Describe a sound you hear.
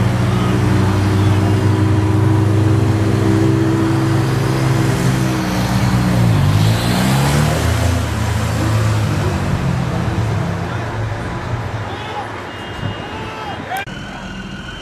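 A crowd of people shouts and chatters outdoors.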